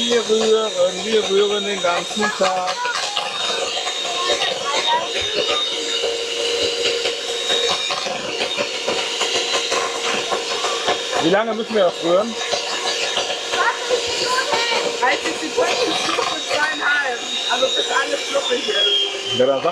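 An electric hand mixer whirs steadily close by.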